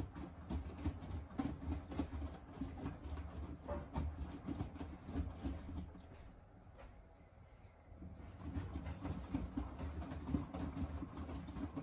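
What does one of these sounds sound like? A washing machine drum turns with a low rumble.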